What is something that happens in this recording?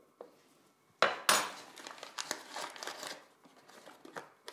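Ingredients pour and patter into a ceramic bowl.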